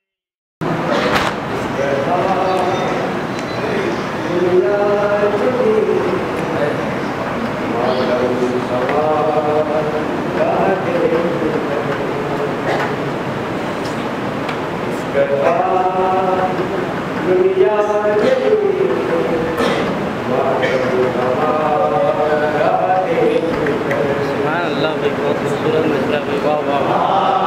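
A young man chants a mournful recitation loudly into a microphone, heard through loudspeakers in an echoing hall.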